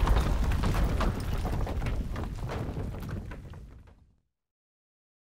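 A deep explosion rumbles and slowly fades away.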